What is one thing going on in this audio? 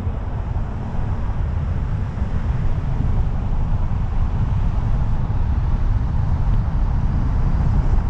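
Wind rushes loudly over a microphone on a moving car.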